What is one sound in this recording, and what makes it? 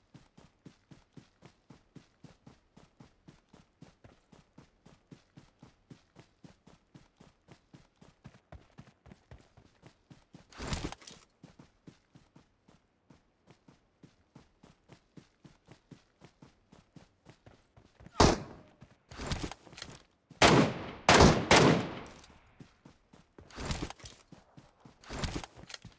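Footsteps run quickly and steadily over grass.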